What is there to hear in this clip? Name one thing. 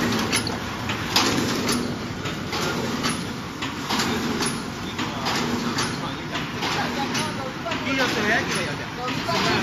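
A paper cup forming machine clatters rhythmically as it runs.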